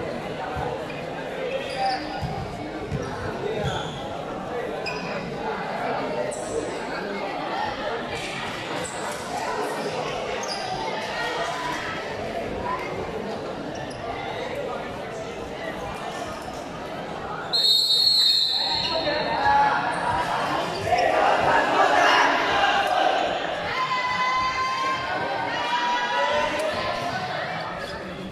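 A crowd of young people chatters in a large echoing hall.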